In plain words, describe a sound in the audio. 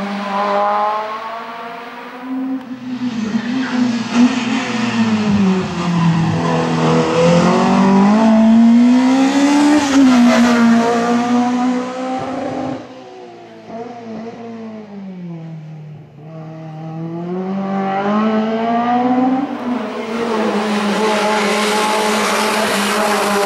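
A racing car engine roars and revs hard, rising and falling in pitch as the car accelerates and shifts gears.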